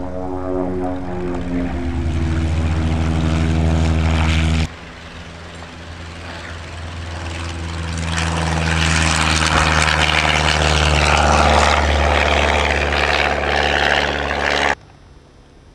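A small propeller plane's engine roars loudly close by as the plane speeds past.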